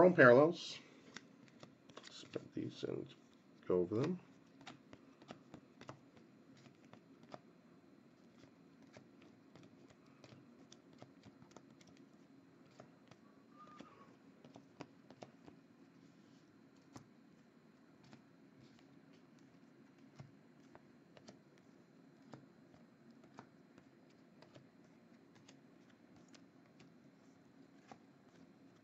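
Trading cards flick and shuffle softly in a person's hands.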